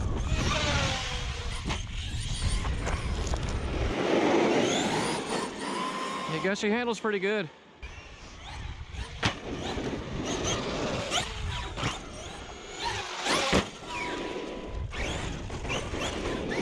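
Small tyres rumble and crunch over dirt and pavement.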